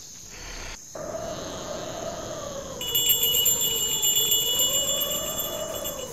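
An eerie wavering tone swells and hums.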